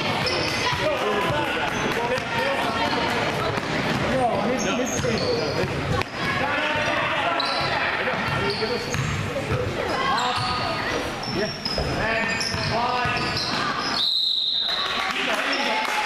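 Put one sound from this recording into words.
Spectators shout and cheer in an echoing hall.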